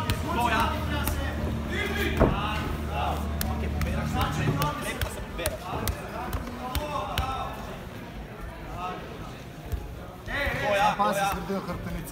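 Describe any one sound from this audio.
Several men shout encouragement nearby, echoing in a large hall.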